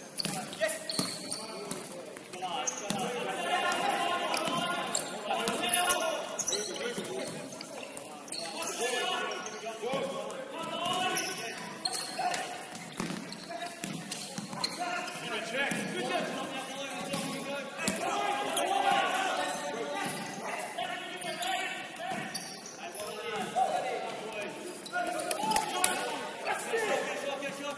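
Spectators and players shout and chatter with echo.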